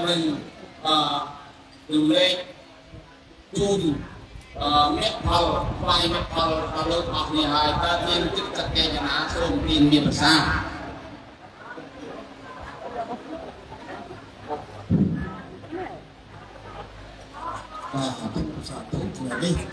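A man speaks steadily through a loudspeaker.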